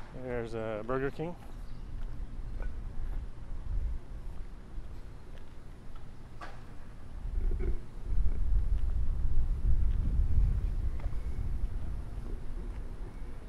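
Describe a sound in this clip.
Wind rumbles outdoors, growing stronger midway.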